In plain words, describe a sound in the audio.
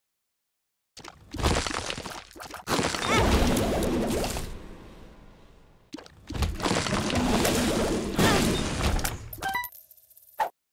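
A loud laser beam blasts with a roaring rush.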